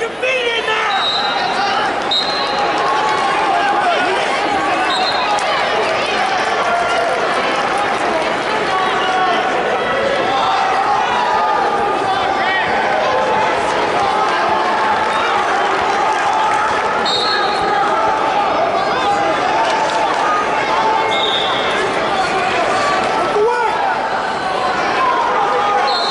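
A referee's whistle blows in short shrill bursts.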